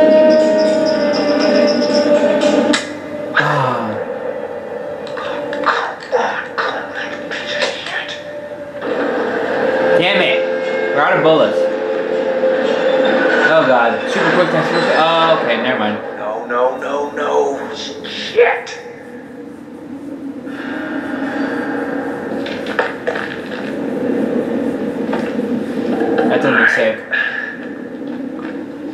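Two young men talk and react excitedly through a microphone.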